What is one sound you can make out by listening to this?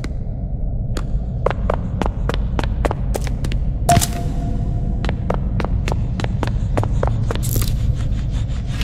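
Footsteps walk quickly across a hard tiled floor.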